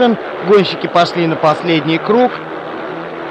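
Motorcycle engines rev up and down in pitch.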